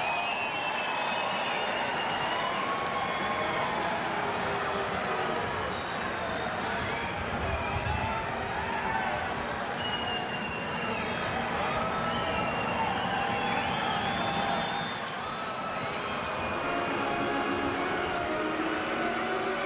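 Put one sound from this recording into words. A crowd murmurs steadily in a large open stadium.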